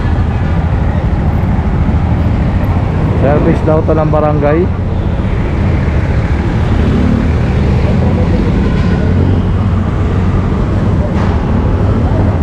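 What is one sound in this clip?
Vehicle engines rumble steadily in street traffic.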